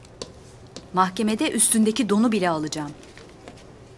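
A woman speaks firmly up close.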